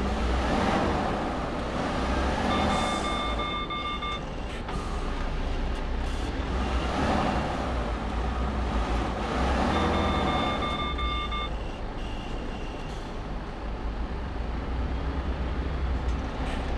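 A truck engine rumbles low and steady as the truck rolls slowly forward.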